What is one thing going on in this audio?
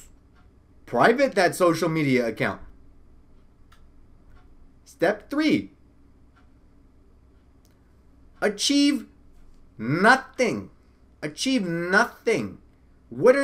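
A young man talks expressively and close to a microphone, in short bursts with pauses.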